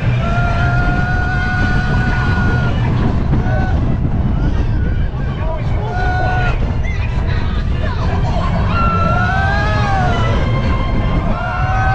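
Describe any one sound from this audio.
Roller coaster wheels squeal with a high, wavering whine.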